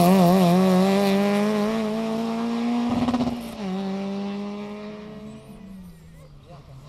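A rally car engine revs hard and fades into the distance.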